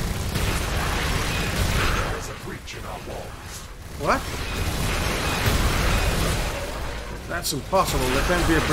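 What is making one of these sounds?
Laser beams fire and hum in a battle.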